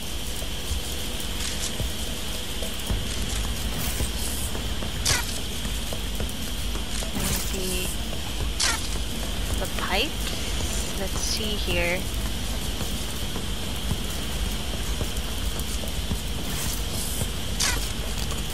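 A small robot's metal legs tap and skitter as it walks.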